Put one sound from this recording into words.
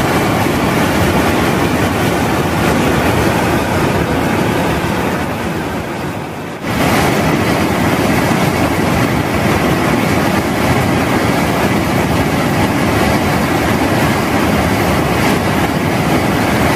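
A rushing stream roars and splashes over rocks.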